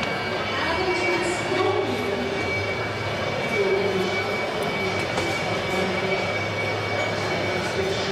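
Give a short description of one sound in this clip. A crowd murmurs in a large echoing hall.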